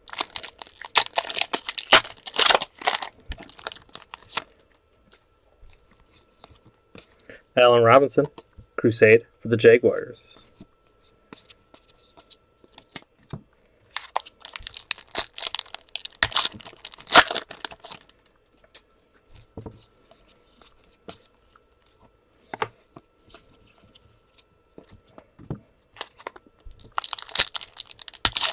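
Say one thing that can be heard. Foil wrappers crinkle and tear as packs are opened.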